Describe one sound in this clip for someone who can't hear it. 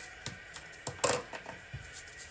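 A card taps and slides on paper.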